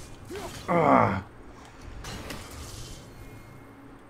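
An axe swishes through the air and strikes.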